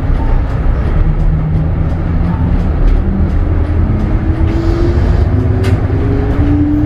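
A bus engine whines, rising in pitch as the bus speeds up.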